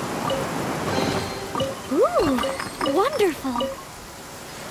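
A chest opens with a bright chiming jingle.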